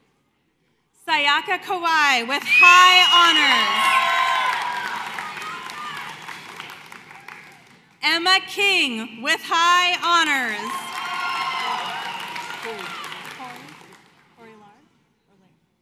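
A crowd cheers and whoops loudly in a large echoing hall.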